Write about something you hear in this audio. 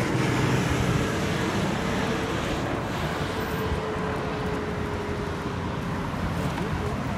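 A motorbike engine hums as it passes.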